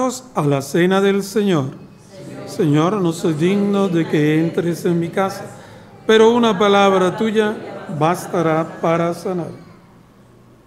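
A man chants loudly through a microphone in an echoing room.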